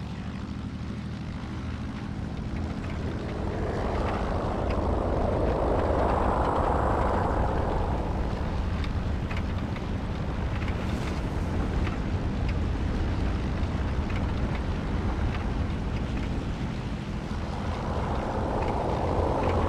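Twin propeller engines drone steadily and swell louder.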